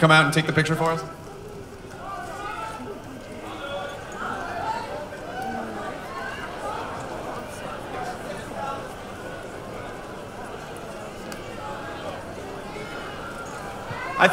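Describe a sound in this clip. A large crowd chatters and cheers in a big echoing hall.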